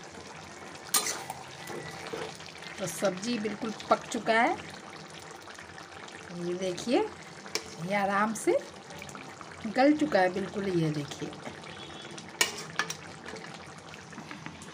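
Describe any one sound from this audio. A metal spatula scrapes and clinks against a metal pan while stirring a thick curry.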